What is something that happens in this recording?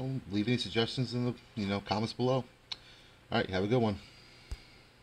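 A man speaks close to the microphone in a casual, animated way.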